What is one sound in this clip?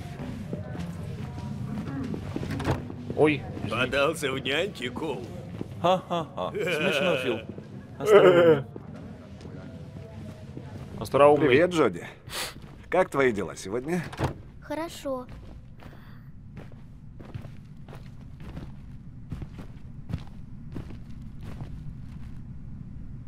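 Footsteps click steadily on a hard floor.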